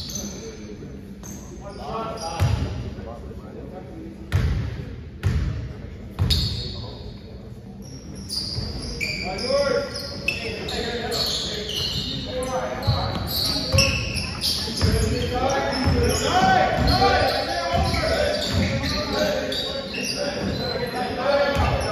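A basketball bounces on a hard court in a large echoing gym.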